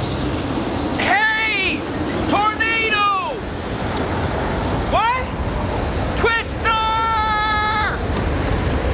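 A man shouts loudly and excitedly.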